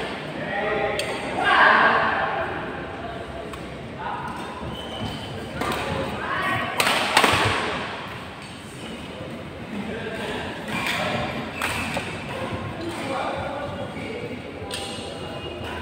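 Badminton rackets smack a shuttlecock with sharp pops.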